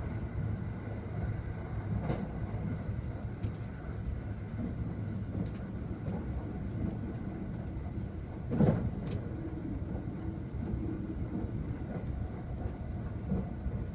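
A train rumbles steadily along its tracks.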